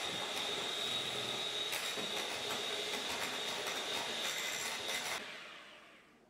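An electric hand mixer whirs loudly while beating liquid.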